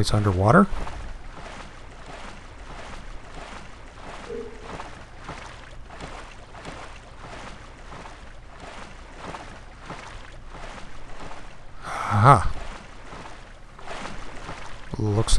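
Water splashes in steady, rhythmic strokes as a swimmer paddles along.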